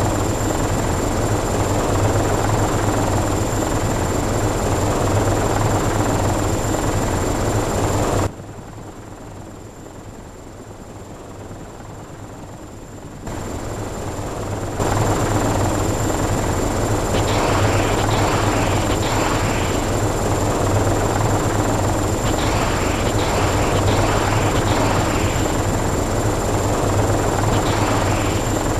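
A helicopter's rotor and engine drone steadily.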